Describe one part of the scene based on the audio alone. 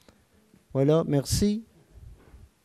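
An elderly man speaks briefly into a microphone in a quiet room.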